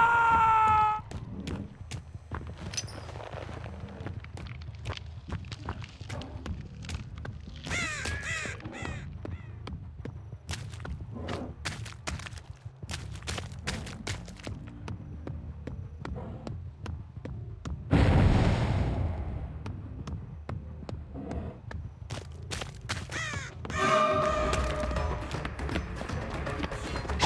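Heavy footsteps tread steadily over ground.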